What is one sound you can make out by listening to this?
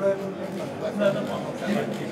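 A group of men chatter nearby.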